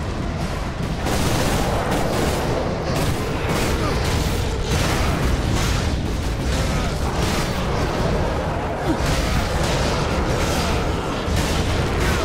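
A chainsaw-like blade revs and grinds loudly.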